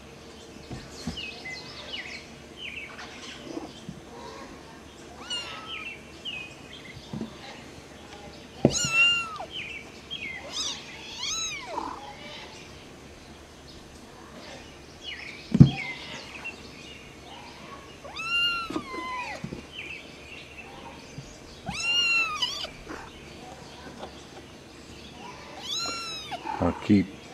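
Kittens mew in high, thin cries close by.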